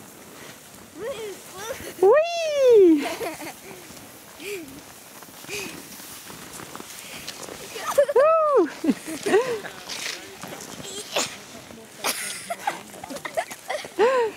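A child squeals and shouts with high glides close by.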